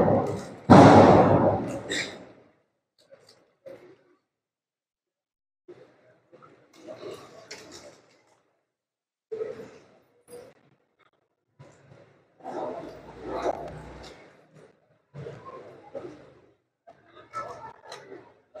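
Men murmur and talk in a large echoing hall.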